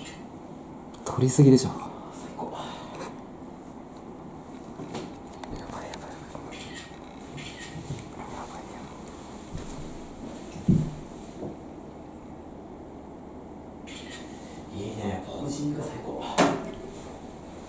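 A man mutters to himself nearby.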